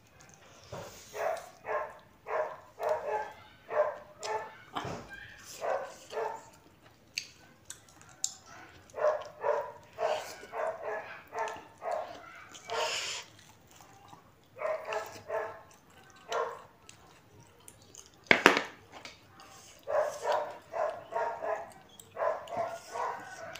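A woman chews food loudly and smacks her lips close by.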